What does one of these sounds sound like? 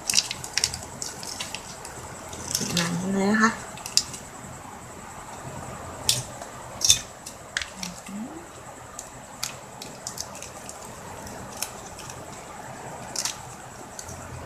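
Plastic ribbon crinkles and rustles as hands fold and handle it.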